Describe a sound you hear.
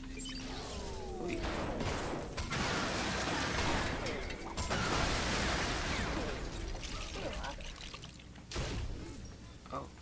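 Toy bricks clatter and scatter as they break apart.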